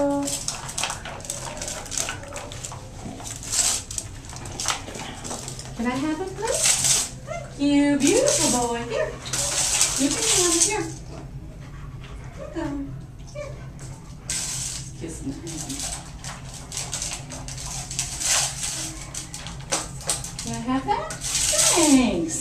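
A dog crunches dry food from a metal bowl.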